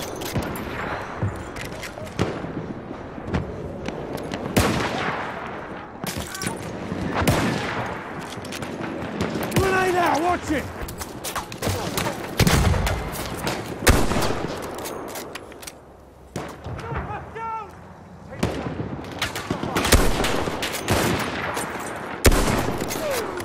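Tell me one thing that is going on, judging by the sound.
Rifle shots crack loudly, one at a time, with a ringing echo.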